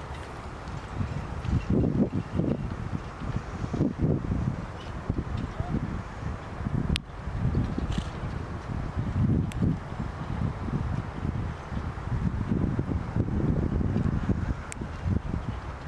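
Horses' hooves thud softly on sand as carriages pass.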